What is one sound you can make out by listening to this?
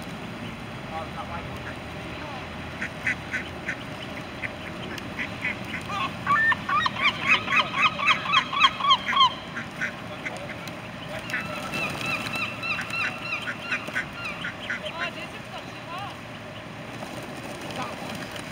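Pigeons flap their wings as they take off.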